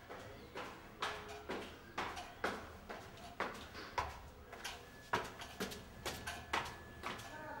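Footsteps tap on hard stone stairs.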